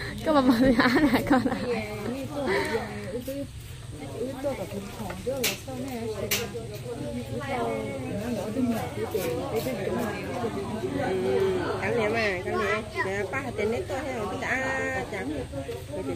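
A knife scrapes and slices a lime.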